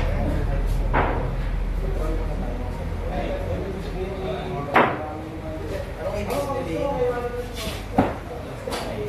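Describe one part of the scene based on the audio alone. Billiard balls clack sharply together.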